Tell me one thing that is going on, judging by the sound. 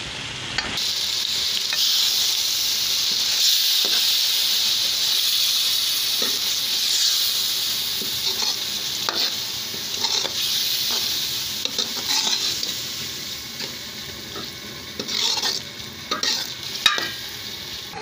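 A metal ladle scrapes and clinks against a pan.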